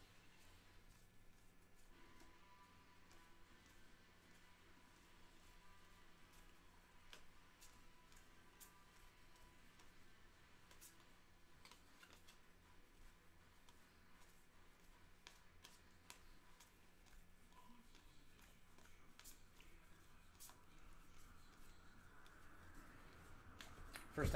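Trading cards flick and click softly as they are shuffled through by hand.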